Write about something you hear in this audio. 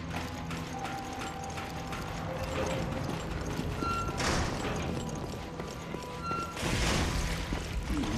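Footsteps clang on metal stairs and floors.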